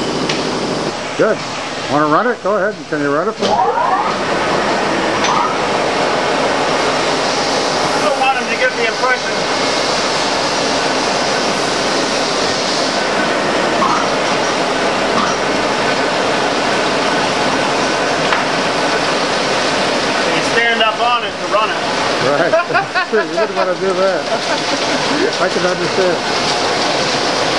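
A man speaks loudly over the machine noise.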